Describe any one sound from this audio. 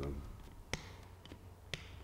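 Pliers clip metal with a sharp snap.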